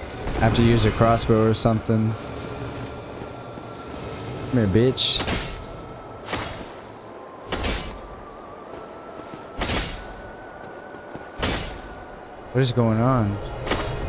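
A sword slashes and strikes with sharp thuds.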